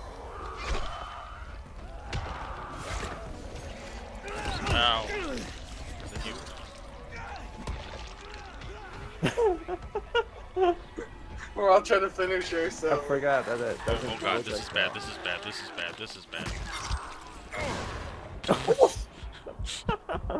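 Heavy blows thud and smack into bodies.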